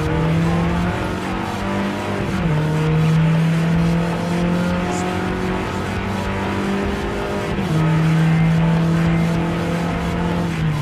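A racing car engine accelerates at full throttle.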